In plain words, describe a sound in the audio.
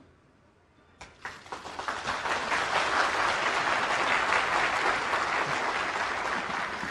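A large crowd applauds loudly in a big hall.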